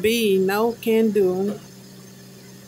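A young woman sings a few wavering notes close by.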